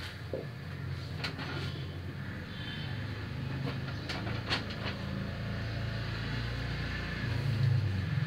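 Sheets of paper rustle as they are moved.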